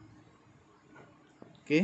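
Fingers tap lightly on a phone's touchscreen.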